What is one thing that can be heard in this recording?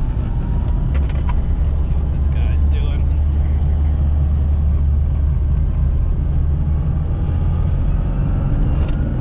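Small things in the cabin rattle and knock.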